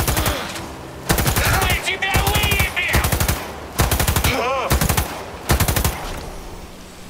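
An automatic rifle fires loud rapid bursts.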